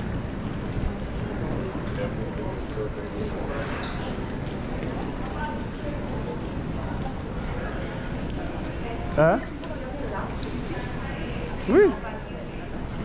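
Many people murmur and footsteps echo in a large hall.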